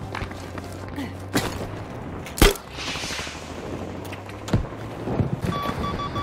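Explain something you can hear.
Footsteps crunch over rubble and stone.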